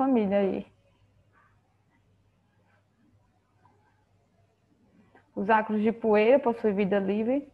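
An elderly woman speaks calmly over a microphone, lecturing.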